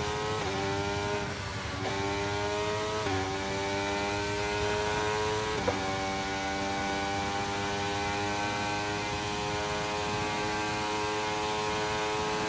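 A racing car engine screams at high revs, dropping in pitch at each gear change and climbing again.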